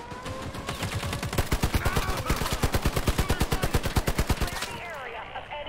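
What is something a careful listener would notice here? Rapid gunfire rattles in bursts.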